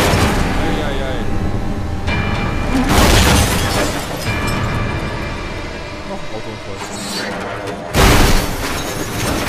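A car crashes with loud bangs and crunching metal.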